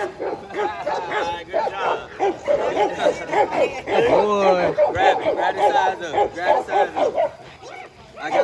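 A dog growls while tugging.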